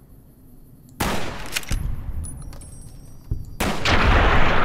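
A gun fires loud shots that echo.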